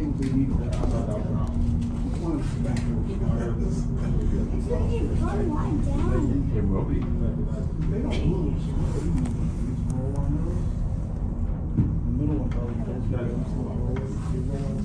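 A cable car cabin rumbles and hums steadily as it glides along.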